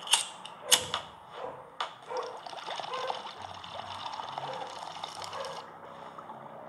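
Water bubbles and gurgles in a pipe.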